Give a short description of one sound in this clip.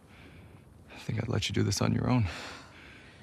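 A young man speaks sharply.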